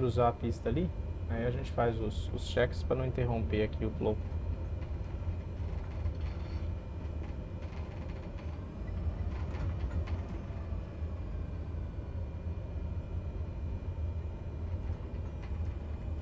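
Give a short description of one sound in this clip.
A small plane's engine drones steadily while taxiing.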